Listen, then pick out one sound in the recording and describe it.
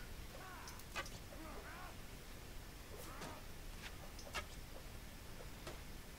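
Bowstrings twang as arrows are shot.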